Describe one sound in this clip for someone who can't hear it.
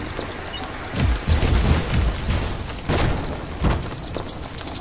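Objects smash apart with a loud crash, and small pieces scatter and clatter.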